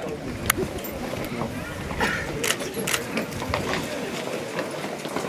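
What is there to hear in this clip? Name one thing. Horse hooves clop on a paved road.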